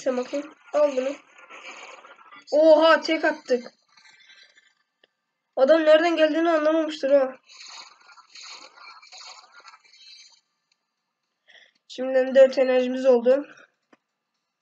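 A teenage boy speaks with animation close to a microphone, in short bursts.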